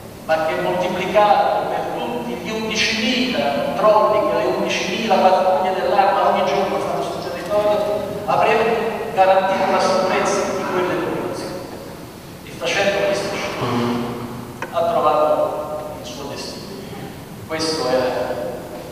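A middle-aged man speaks calmly into a microphone, heard through loudspeakers in an echoing hall.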